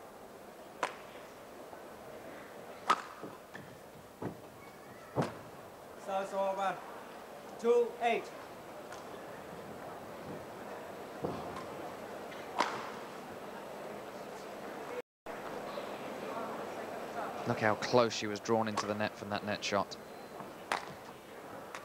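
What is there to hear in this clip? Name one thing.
A badminton racket sharply strikes a shuttlecock in a large echoing hall.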